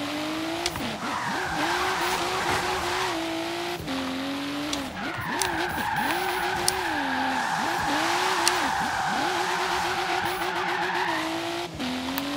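Tyres screech while a car drifts through bends.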